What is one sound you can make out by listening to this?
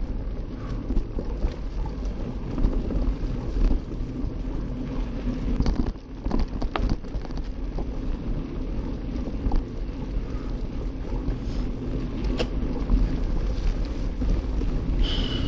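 Wind rumbles steadily over a moving microphone.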